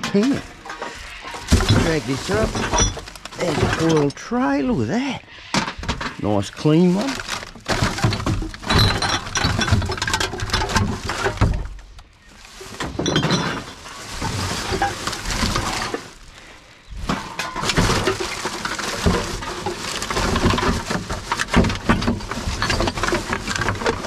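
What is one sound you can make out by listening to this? A plastic bin bag rustles and crinkles as hands rummage through it.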